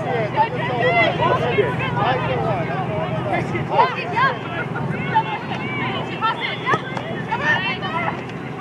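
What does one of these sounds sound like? Young women shout and call to each other across an open field outdoors.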